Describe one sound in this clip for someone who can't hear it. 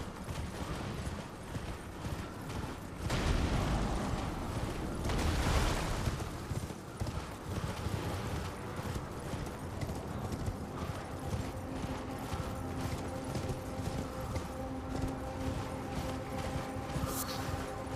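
Footsteps crunch quickly over grass and stone.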